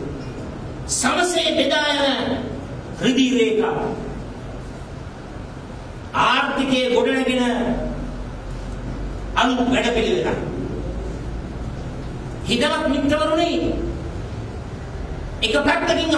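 A man speaks forcefully into microphones in short bursts, with pauses between phrases, echoing slightly in a room.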